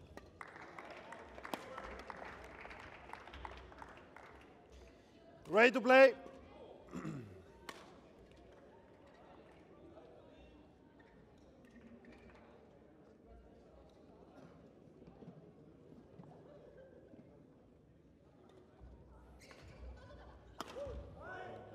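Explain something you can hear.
Rackets strike a shuttlecock in a rally inside a large echoing hall.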